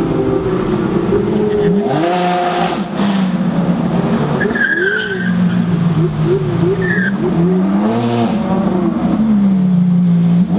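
Sports car engines roar and rev loudly as they drive past outdoors.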